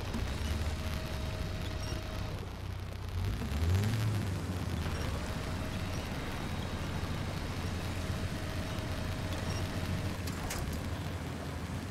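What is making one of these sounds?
Water splashes and churns around a vehicle.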